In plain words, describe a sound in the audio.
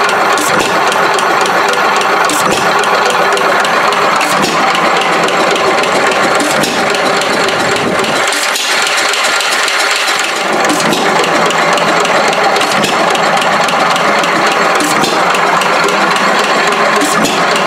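An old stationary engine chugs and clatters steadily close by.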